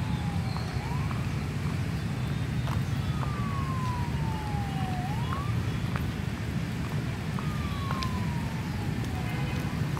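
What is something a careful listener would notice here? Wind rushes steadily through the trees outdoors.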